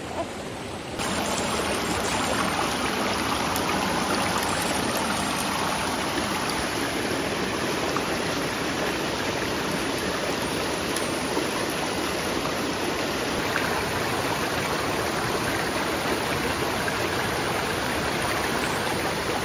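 A shallow stream rushes and splashes over rocks.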